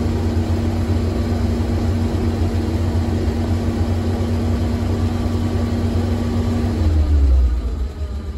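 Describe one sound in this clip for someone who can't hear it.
A slant-six engine runs at raised revs.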